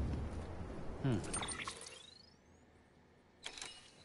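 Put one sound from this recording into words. An electronic device chirps and whirs with a rising tone.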